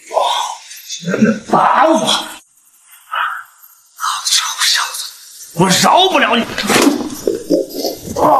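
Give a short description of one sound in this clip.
A young man shouts angrily up close.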